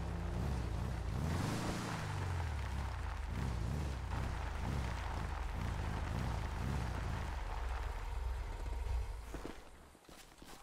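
A buggy engine roars and revs over dirt.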